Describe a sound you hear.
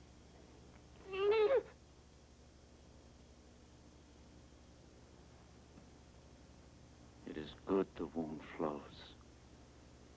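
A man speaks in a tense, low voice close by.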